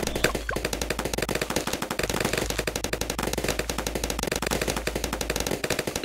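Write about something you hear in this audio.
Rapid popping and zapping game sound effects play without pause.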